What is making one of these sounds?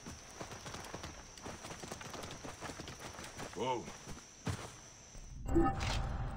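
A camel's hooves thud softly on sandy ground.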